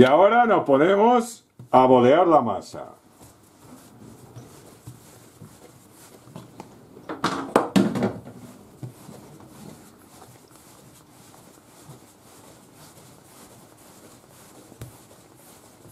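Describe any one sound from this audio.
Dough thumps and presses softly on a countertop.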